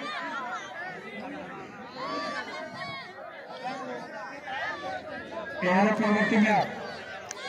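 A crowd of men and boys chatters and calls out outdoors.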